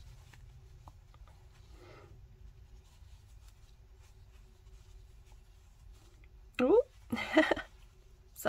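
A crochet hook softly rustles and pulls through yarn.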